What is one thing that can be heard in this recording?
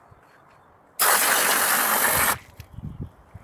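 Water gushes from a garden hose in a strong hiss.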